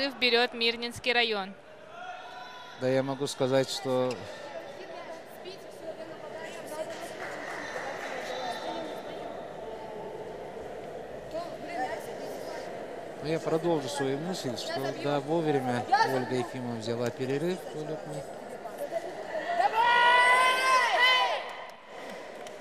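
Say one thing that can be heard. Young women talk excitedly close by.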